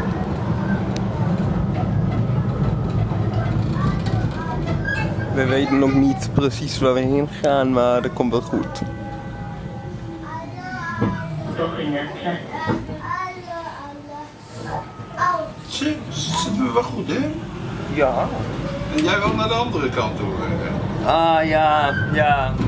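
A low-floor tram rumbles along rails.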